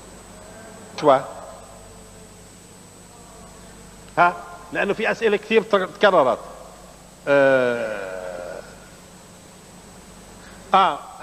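A middle-aged man speaks loudly in short bursts in a room with some echo.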